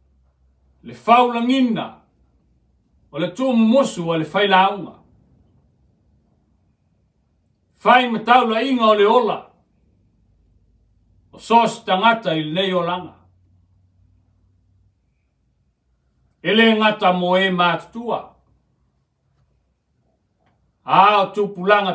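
A middle-aged man speaks slowly and solemnly into a microphone, pausing between phrases.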